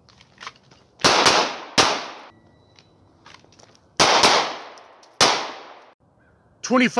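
Pistol shots crack loudly outdoors, each echoing away.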